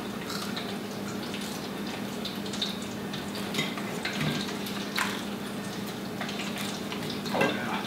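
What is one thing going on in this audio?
Fried food crunches as a man eats.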